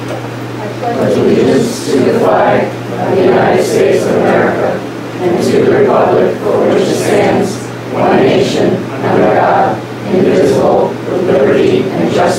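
A group of men and women recites together in unison.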